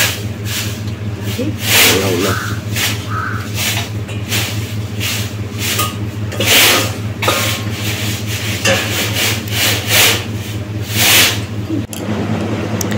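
A man eats food with his hands.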